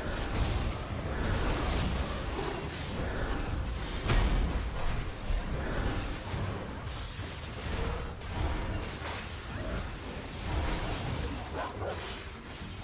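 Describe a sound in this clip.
Magic spells whoosh and crackle in a busy fight.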